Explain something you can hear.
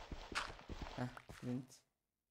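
A pickaxe chips at stone with quick knocks.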